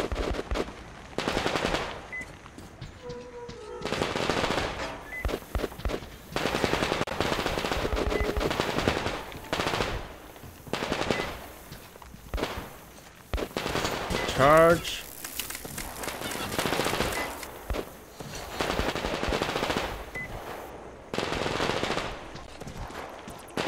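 Footsteps crunch on gravel and rubble.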